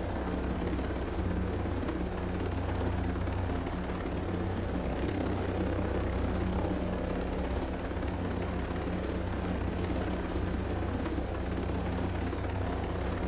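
A helicopter's rotor thumps steadily as it flies.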